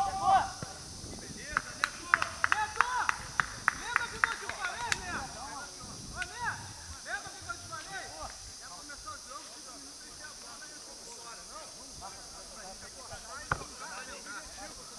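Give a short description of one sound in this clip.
Men shout to each other in the distance across an open field.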